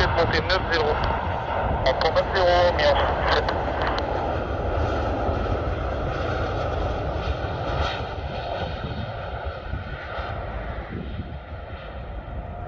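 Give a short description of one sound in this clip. A jet airliner's engines roar steadily as it flies in low.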